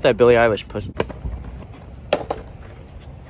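A skateboard clacks against the pavement.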